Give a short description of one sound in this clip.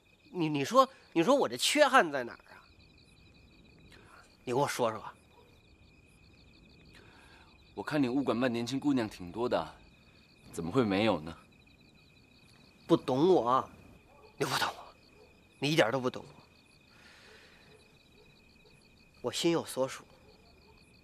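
A man speaks with emotion, close by.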